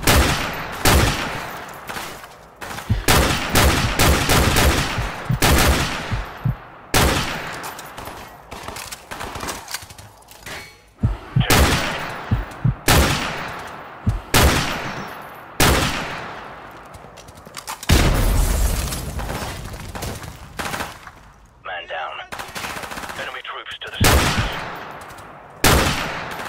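A rifle fires loud shots again and again, each booming and echoing away.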